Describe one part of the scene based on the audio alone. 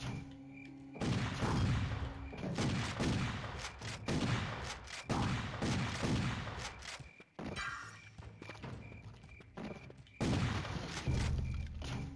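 A heavy gun fires in loud, booming bursts.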